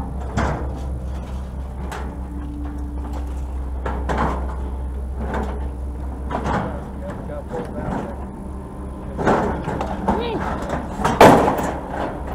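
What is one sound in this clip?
Metal clanks and scrapes as a heavy object is handled.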